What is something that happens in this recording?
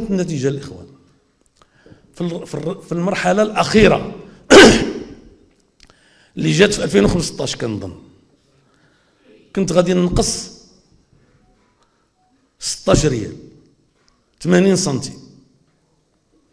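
An elderly man speaks forcefully into a microphone in short bursts with pauses.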